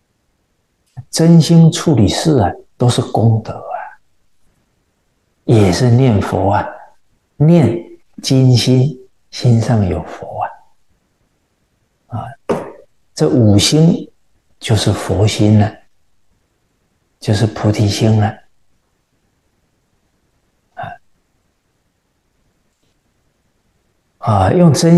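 A middle-aged man speaks calmly and warmly into a close microphone, with pauses.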